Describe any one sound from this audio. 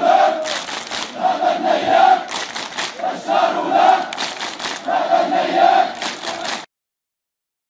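A large crowd chants loudly in rhythm outdoors.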